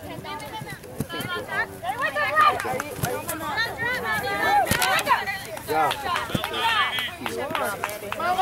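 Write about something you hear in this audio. Young women shout and call to one another outdoors.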